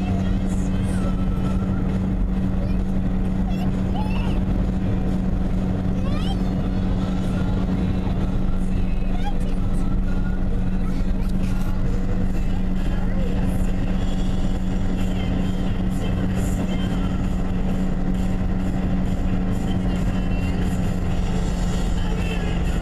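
Tyres rumble on asphalt at highway speed, heard from inside a car.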